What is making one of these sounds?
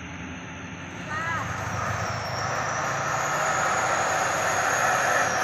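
A truck drives by on a road with rising engine noise.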